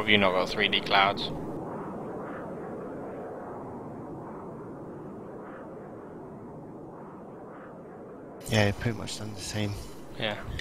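A jet airliner's engines hum steadily at idle.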